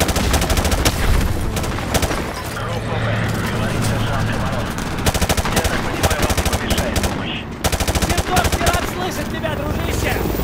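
A rifle magazine clicks out and snaps in during a reload.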